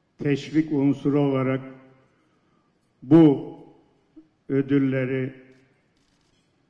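An elderly man speaks with emphasis into a microphone, in short phrases with pauses.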